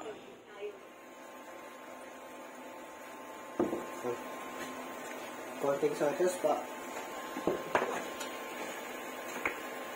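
Meat sizzles gently in a pan.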